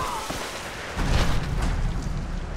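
A body lands hard on a pile of bones with a heavy thud.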